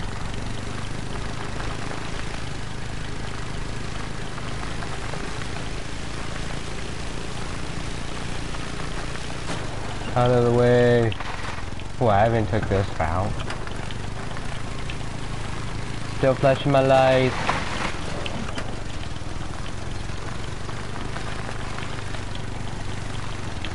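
A quad bike engine hums steadily as the bike drives over rough ground.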